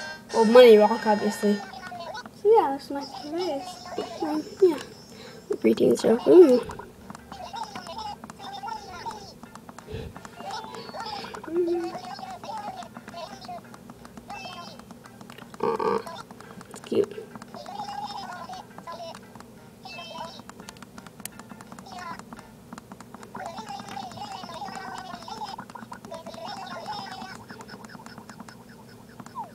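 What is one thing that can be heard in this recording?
A handheld game console plays quick, chirping babble sounds through its small speaker.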